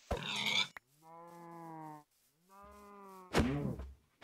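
A cow moos with a low, drawn-out call.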